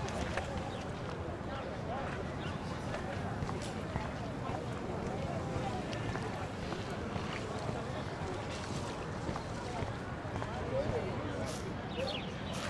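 Footsteps walk steadily on pavement.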